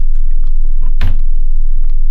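A closet door bangs shut.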